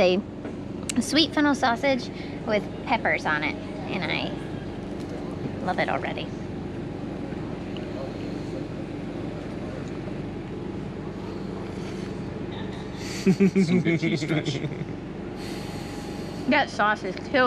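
A young woman talks with animation close to the microphone.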